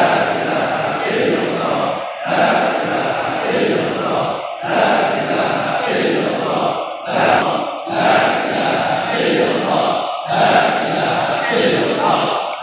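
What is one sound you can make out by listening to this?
A large crowd of people chants together in unison in an echoing hall.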